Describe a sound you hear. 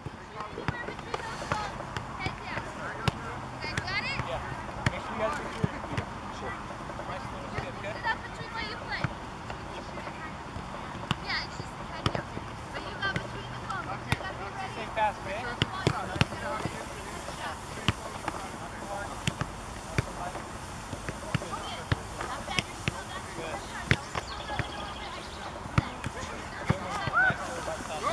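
A soccer ball thumps off feet and gloved hands.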